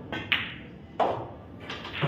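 Pool balls knock together with a hard clack.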